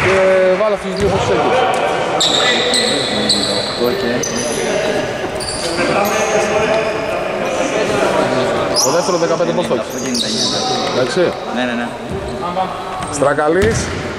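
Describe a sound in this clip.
A man talks in a large echoing hall.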